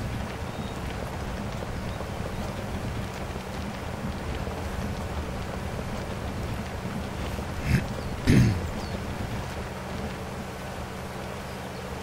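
An engine rumbles steadily as a vehicle drives through mud.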